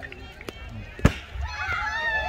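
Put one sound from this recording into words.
A ball smacks sharply into a leather glove.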